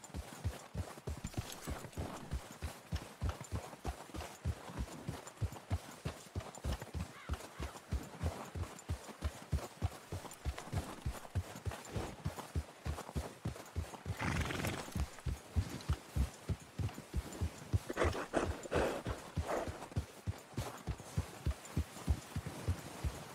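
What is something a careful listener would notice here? Hooves crunch steadily through deep snow at a brisk pace.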